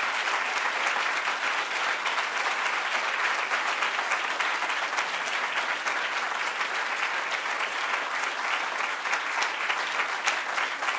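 An audience claps and applauds steadily.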